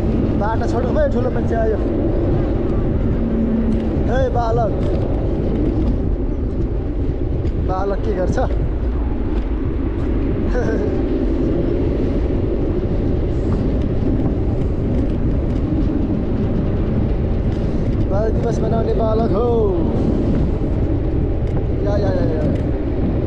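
Wind rushes and rumbles steadily past while riding along outdoors.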